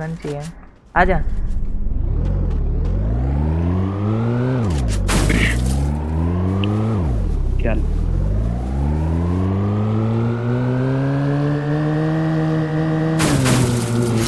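A car engine roars, revving up and dropping repeatedly as it accelerates.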